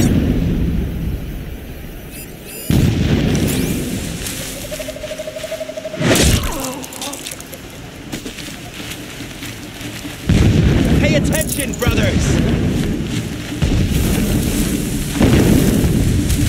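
Tall grass rustles and swishes as someone creeps through it.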